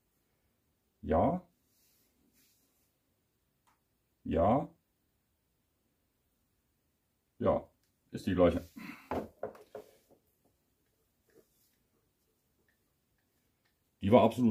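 A man speaks calmly in short phrases close by.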